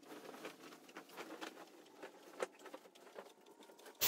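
Bedding rustles as a blanket is shaken.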